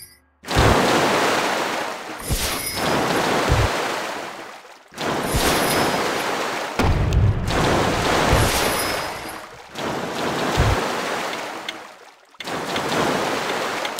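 Magic spells burst with loud whooshing blasts, again and again.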